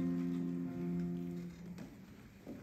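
A piano plays a short chord.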